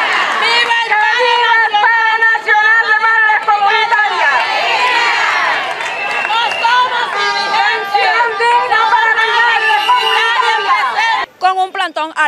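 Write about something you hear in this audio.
A middle-aged woman shouts through a megaphone.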